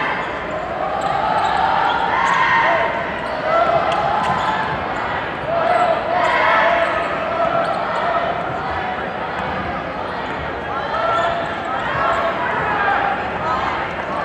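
A large crowd cheers and shouts throughout an echoing arena.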